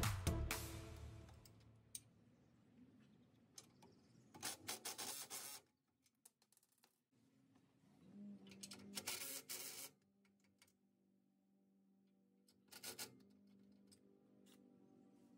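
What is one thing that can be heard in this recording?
Metal parts clink and rattle close by.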